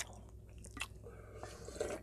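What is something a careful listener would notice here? A young man gulps soup from a bowl.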